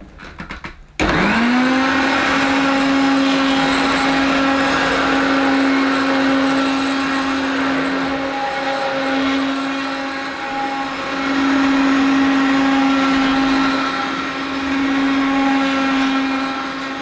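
A vacuum cleaner motor starts up and whirs steadily with a high hum.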